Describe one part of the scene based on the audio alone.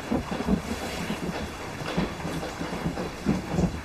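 A man pours liquid from a bottle.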